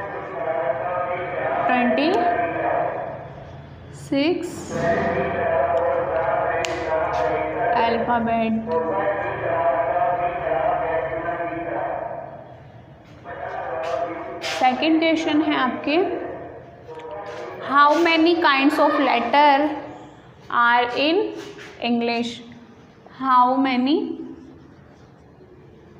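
A woman speaks slowly and clearly, explaining as if teaching, close by in a slightly echoing room.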